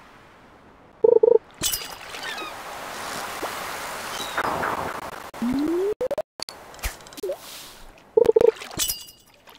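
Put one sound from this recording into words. A bright chime rings as a fish bites.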